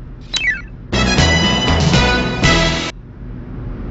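A short electronic jingle plays as a puzzle level is completed.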